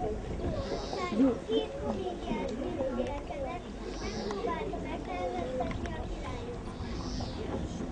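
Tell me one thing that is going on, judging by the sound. Young children's voices chatter and sing together outdoors.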